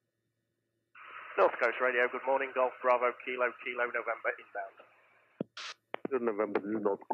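A woman speaks with animation through a headset intercom.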